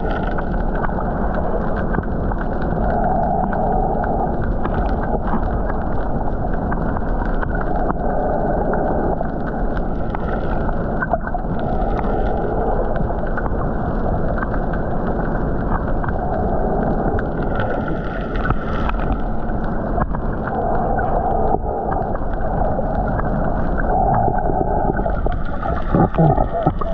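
Water rumbles and swishes, muffled, as if heard underwater.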